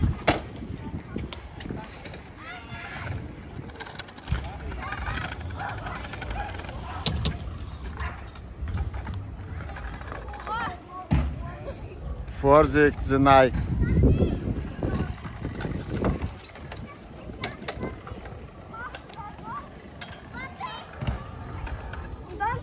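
Scooter wheels roll and rumble over smooth concrete.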